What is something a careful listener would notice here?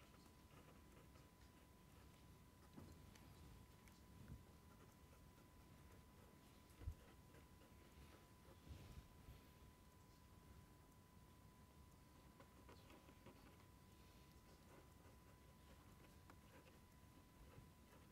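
A pen scratches and squeaks across paper close by.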